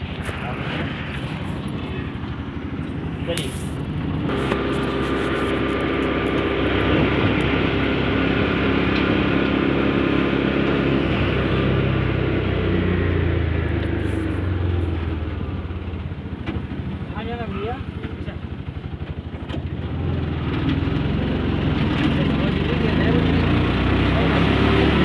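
An engine rumbles steadily as a vehicle drives along a road.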